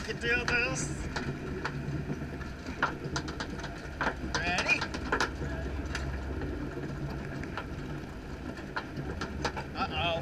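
Metal parts of the ride clank and click now and then.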